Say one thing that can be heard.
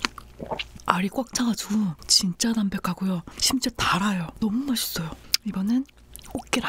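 A young woman hums and makes high vocal sounds close to a microphone.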